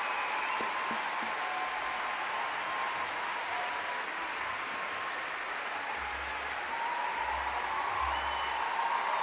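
An orchestra plays softly in a large echoing hall.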